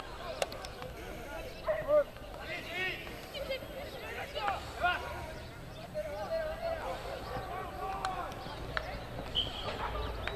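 Young men call out to each other.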